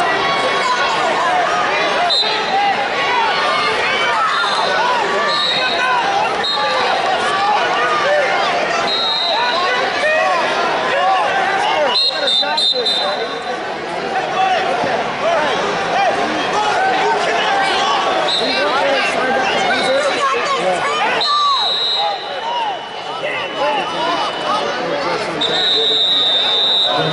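A large crowd cheers and chatters in a big echoing hall.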